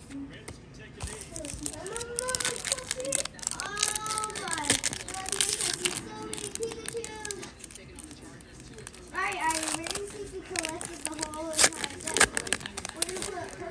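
A foil wrapper crinkles and tears as it is opened by hand.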